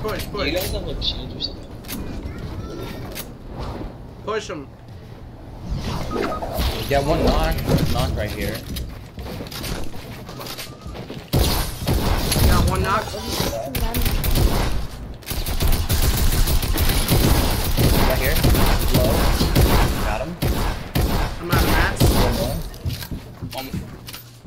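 A young man talks excitedly into a headset microphone.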